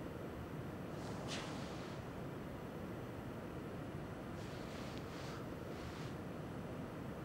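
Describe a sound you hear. Bedding rustles as a man climbs onto a bed.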